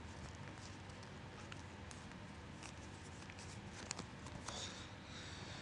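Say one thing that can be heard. Paper crinkles and rustles as it is folded.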